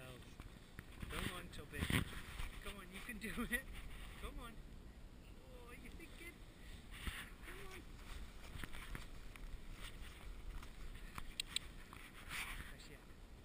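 A dog bounds through deep snow, crunching and scuffling.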